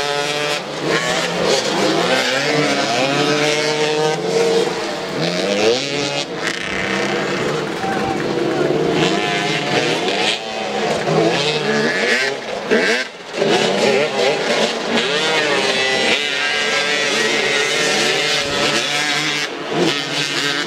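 Several motorcycle engines rev and whine up and down outdoors.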